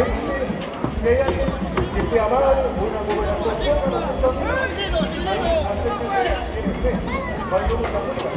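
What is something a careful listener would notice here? Horses' hooves thud on soft dirt as they gallop.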